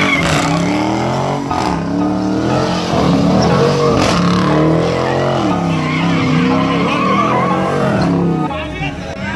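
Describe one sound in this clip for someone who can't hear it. Tyres screech and squeal on pavement.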